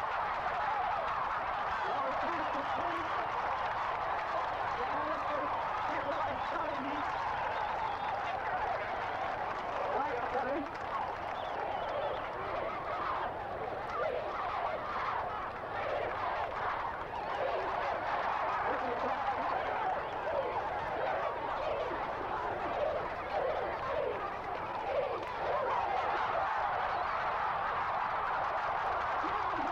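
A large crowd cheers and murmurs.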